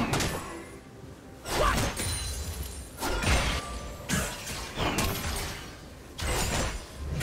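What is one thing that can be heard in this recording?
Game spell effects burst and crackle in rapid bursts during a fight.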